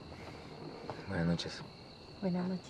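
A man speaks a short, friendly farewell up close.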